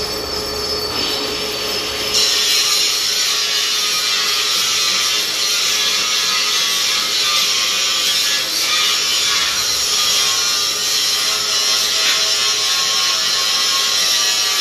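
A metal lathe whirs steadily as its cutting tool scrapes and hisses against turning metal.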